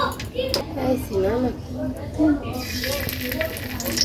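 Food drops into hot oil with a loud hiss.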